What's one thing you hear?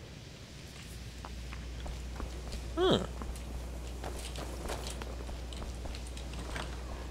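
Footsteps tap on a stone floor in an echoing hall.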